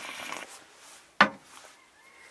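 A cup knocks down on a table.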